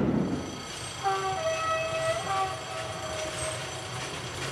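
A steam locomotive whistle sounds in the distance.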